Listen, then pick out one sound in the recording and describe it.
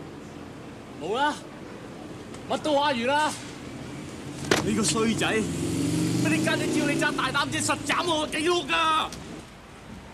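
Men shout and argue angrily close by.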